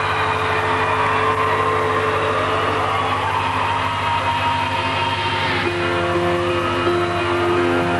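Loud music with sustained synthesizer tones plays from a concert stage.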